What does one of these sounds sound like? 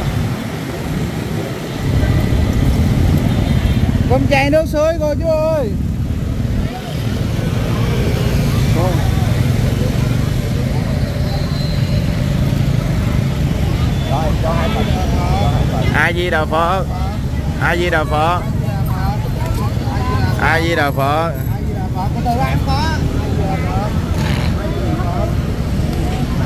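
Motorbike engines hum along a busy street outdoors.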